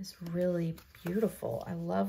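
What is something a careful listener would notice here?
Paper pages rustle as they are flipped.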